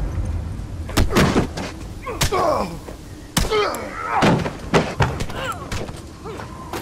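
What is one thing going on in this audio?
A heavy blow thuds into a body during a struggle.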